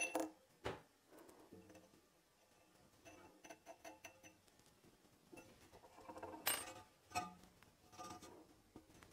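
Hands knock and tap against a wooden box.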